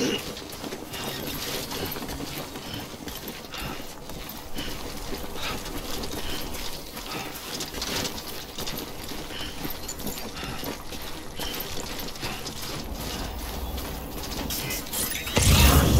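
Footsteps crunch on loose rocky ground at a steady walking pace.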